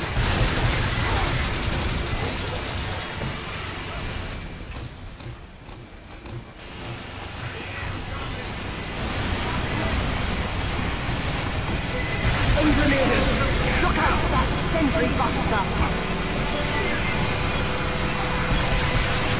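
Gunfire and explosions crackle loudly in a video game battle.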